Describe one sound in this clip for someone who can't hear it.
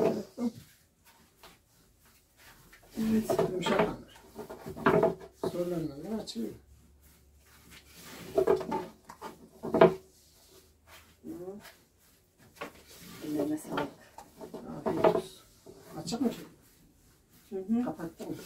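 A rolling pin rolls softly over dough on a wooden board.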